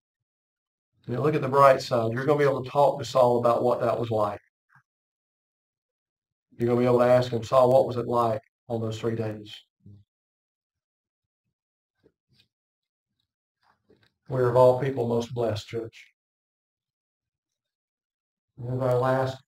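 A middle-aged man reads aloud calmly into a microphone, with pauses between passages.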